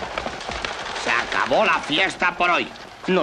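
A man speaks loudly and urgently.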